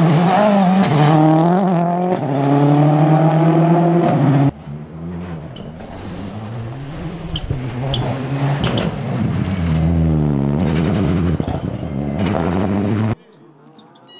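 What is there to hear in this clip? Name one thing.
A rally car engine roars loudly as the car speeds past.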